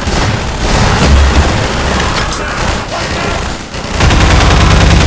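Gunshots fire in rapid bursts, echoing off hard walls.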